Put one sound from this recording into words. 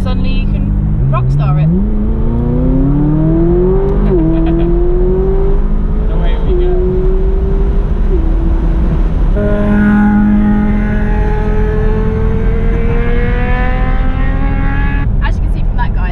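A sports car engine revs up and climbs through the gears, then roars steadily.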